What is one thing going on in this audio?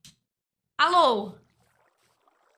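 A young woman exclaims loudly with a rising and falling voice, close to a microphone.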